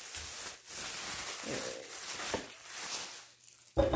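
Small objects clatter onto a table.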